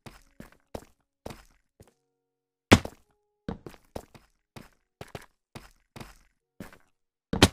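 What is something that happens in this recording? Footsteps crunch on stone in a steady walking rhythm.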